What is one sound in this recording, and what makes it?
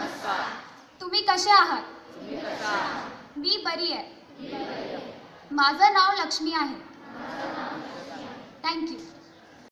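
A girl calls out loudly through a microphone, echoing across an open hall.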